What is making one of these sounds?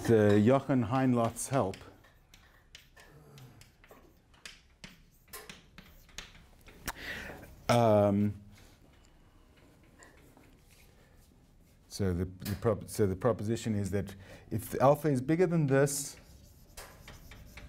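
Chalk taps and scrapes on a board.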